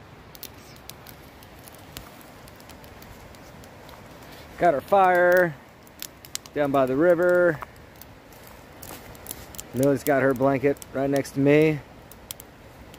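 A campfire crackles and pops.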